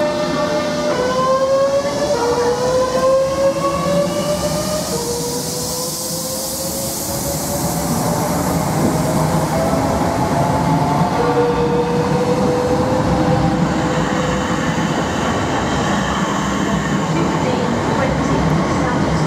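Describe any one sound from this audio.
A train's motors whine, rising in pitch as it speeds up.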